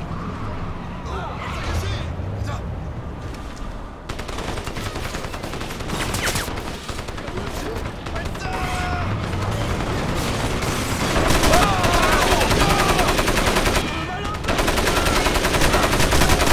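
Explosions boom and crackle nearby.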